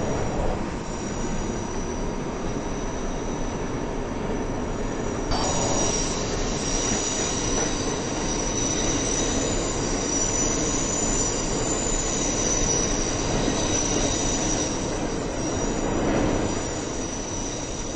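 A train rumbles steadily along the tracks through a tunnel.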